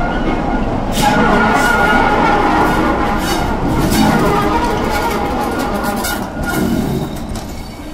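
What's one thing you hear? A diesel locomotive roars loudly as it passes close by.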